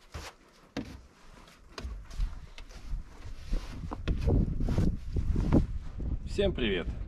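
A brush scrapes snow off a car.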